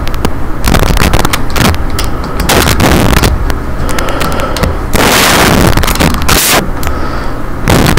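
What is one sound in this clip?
Magic spells crackle and hum steadily.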